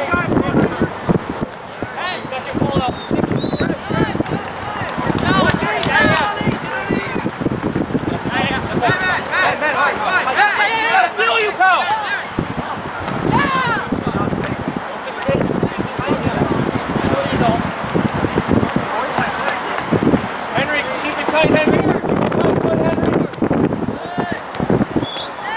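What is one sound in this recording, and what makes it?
Wind buffets against the microphone outdoors.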